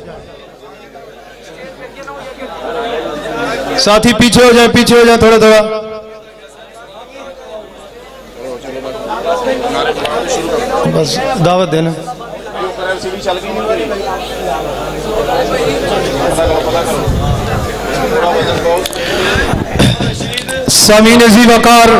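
A man chants loudly through a microphone and loudspeakers, echoing in a large space.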